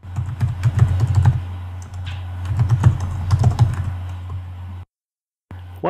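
Keyboard keys click quickly as someone types.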